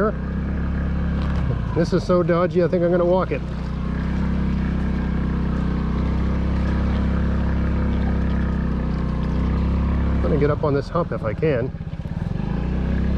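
A small motorbike engine runs steadily close by.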